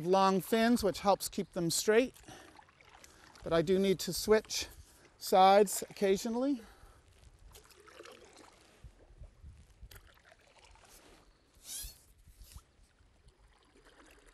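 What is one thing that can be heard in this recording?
A paddle dips and splashes softly in water.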